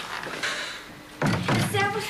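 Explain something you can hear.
A door handle clicks and a door opens.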